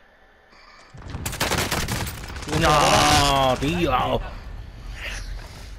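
Rapid gunshots ring out close by.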